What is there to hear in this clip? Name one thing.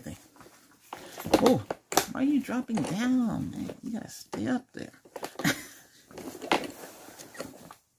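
A fabric bag rustles as it is handled close to a microphone.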